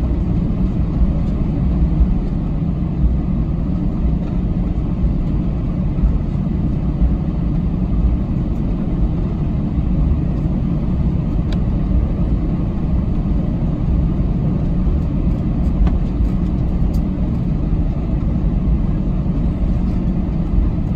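A jet airliner's engines rumble steadily from inside the cabin as the plane taxis.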